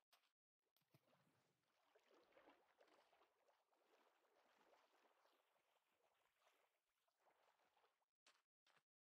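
Water splashes as a swimmer paddles along.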